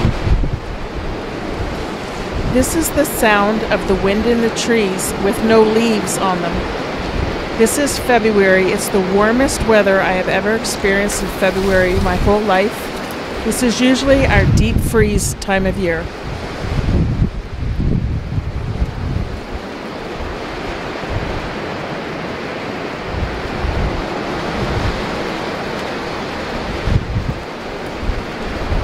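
Wind buffets the microphone in gusts.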